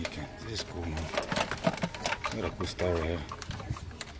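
A plastic game controller clatters as a hand lifts it from a glass shelf.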